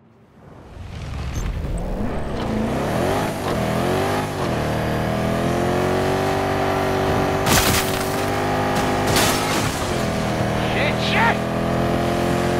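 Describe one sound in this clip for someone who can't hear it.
A vehicle engine hums and revs up and down.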